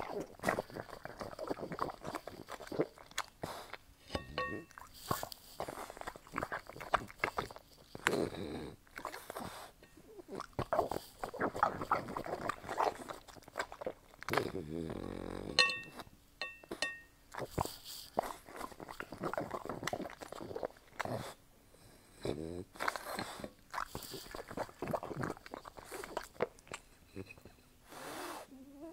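A dog chews and smacks its lips loudly up close.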